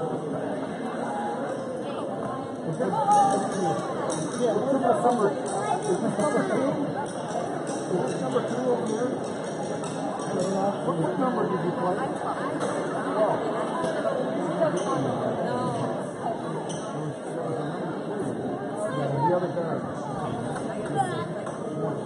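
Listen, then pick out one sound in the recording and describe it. A crowd of spectators chatters throughout, echoing in a large hall.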